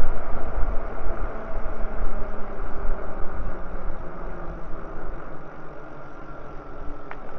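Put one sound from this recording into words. Wind gusts steadily outdoors, rumbling low.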